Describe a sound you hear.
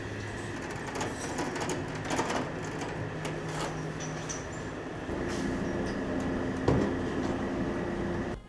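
A shovel scrapes and scoops loose feed.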